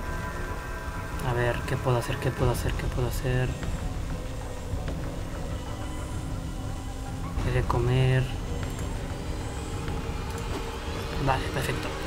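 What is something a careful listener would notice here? Soft menu clicks sound as items are selected.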